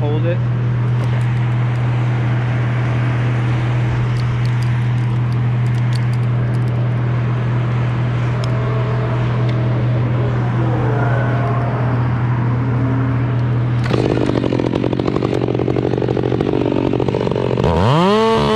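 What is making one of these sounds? Metal climbing gear clinks and rattles close by.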